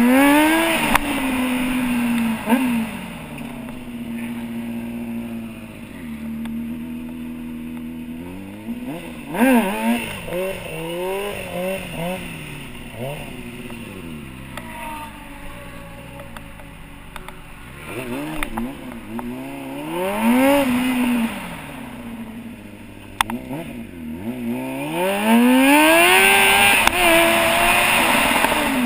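A motorcycle engine revs up and down sharply, close by.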